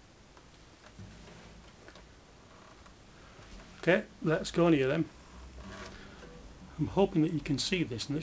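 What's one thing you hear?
A guitar is played with single plucked notes.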